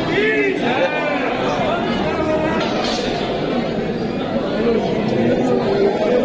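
A dense crowd of men and women chatters loudly all around, close by.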